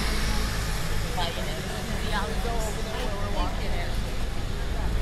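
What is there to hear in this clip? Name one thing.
A man and a woman chat in passing, close by.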